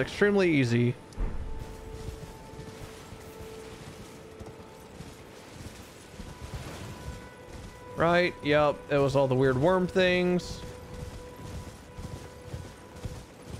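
A horse gallops over grass with thudding hooves.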